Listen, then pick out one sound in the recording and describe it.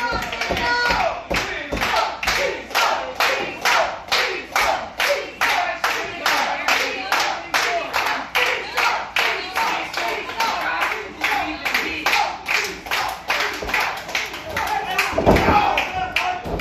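A crowd claps in a steady, fast rhythm.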